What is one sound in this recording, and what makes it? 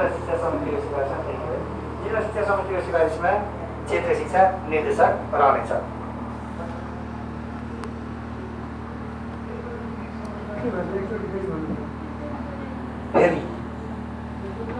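An electric fan hums steadily.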